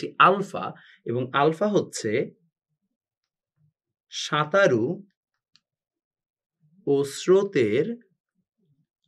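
A young man speaks calmly and clearly into a close microphone, in short phrases with pauses.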